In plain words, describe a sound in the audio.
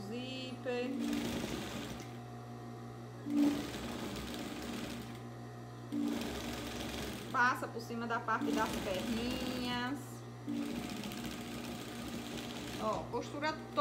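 A sewing machine whirs in short bursts of stitching.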